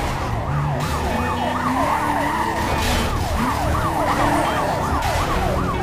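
A police siren wails steadily close by.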